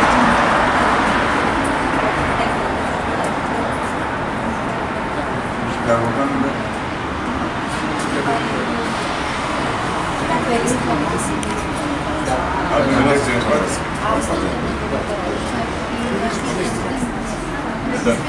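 Men talk quietly nearby in a large echoing hall.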